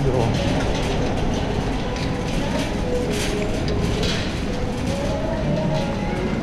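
A shopping trolley rattles as it rolls over a smooth floor.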